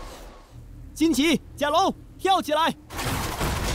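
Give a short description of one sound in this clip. A girl speaks with determination.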